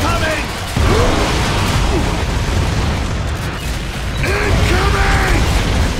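Gunfire and explosions crack and boom.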